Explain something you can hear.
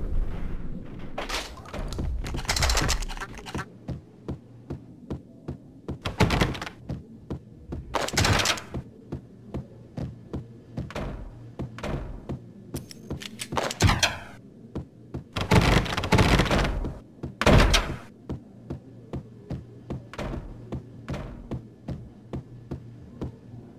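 Footsteps tap at a steady pace on a hard floor.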